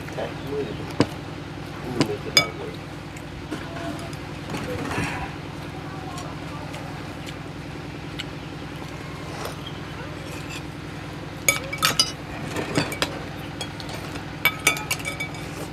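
Spoons clink against bowls.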